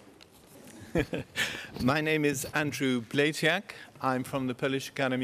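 A middle-aged man speaks calmly into a microphone in a large hall.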